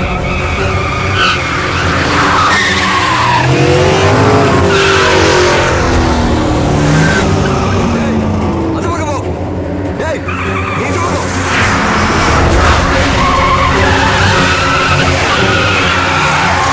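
Car engines roar as several vehicles speed along a road.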